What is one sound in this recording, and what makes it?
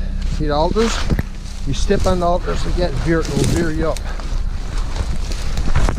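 Bare branches scrape and brush past.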